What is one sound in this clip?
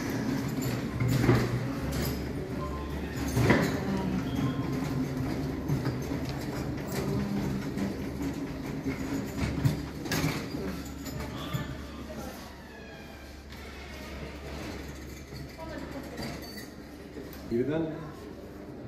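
Stretcher wheels roll and rattle over a hard floor.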